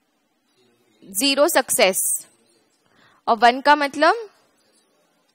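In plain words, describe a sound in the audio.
A woman speaks calmly into a close headset microphone.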